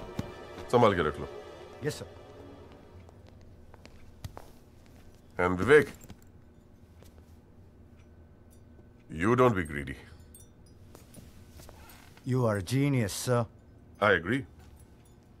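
A middle-aged man speaks forcefully in short bursts.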